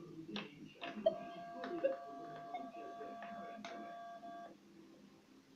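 A metal detector gives a steady electronic beep.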